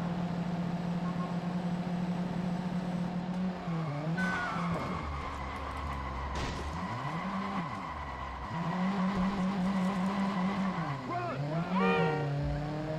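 A car engine hums and revs up and down, rising and falling in pitch.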